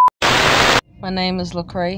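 A woman talks close to a phone microphone.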